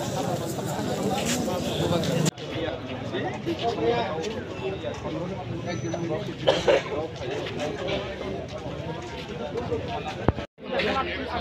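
A crowd of men talks outdoors in overlapping voices.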